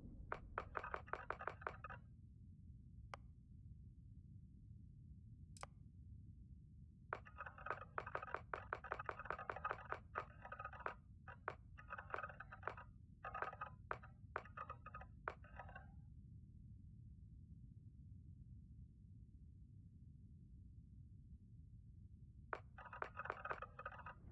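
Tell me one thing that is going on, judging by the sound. Quick soft menu clicks tick in rapid runs as a setting is changed step by step.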